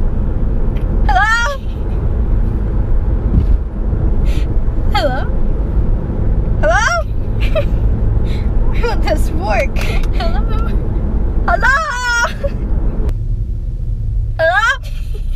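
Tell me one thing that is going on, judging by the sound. A young woman talks playfully close by.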